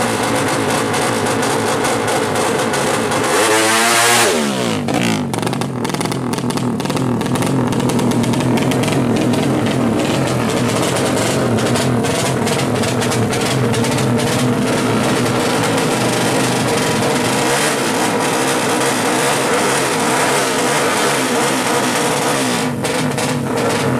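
A two-stroke motorcycle engine revs loudly and raspily up close.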